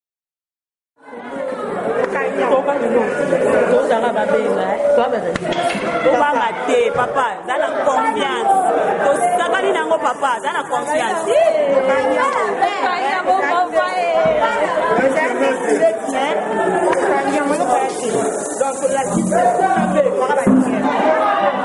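A crowd cheers and chatters.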